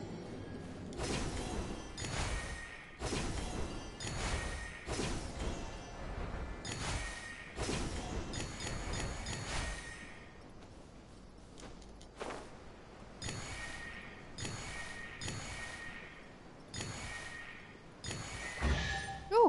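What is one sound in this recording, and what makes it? Bright magical chimes ring out again and again as glowing sparks are collected.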